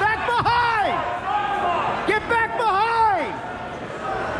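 A man close by shouts encouragement loudly.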